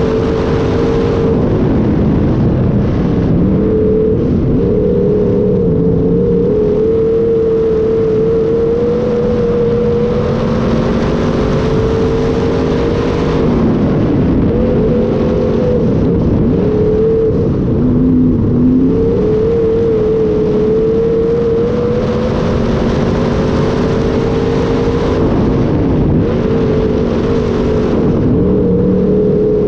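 Dirt and stones rattle against a car's body.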